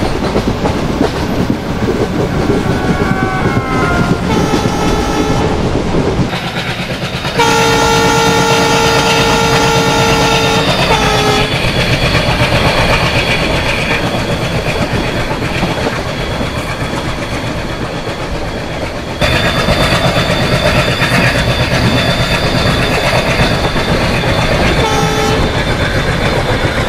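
A diesel locomotive rumbles steadily along the rails.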